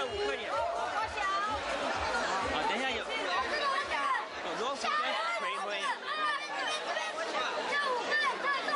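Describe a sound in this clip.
Children talk with animation close by.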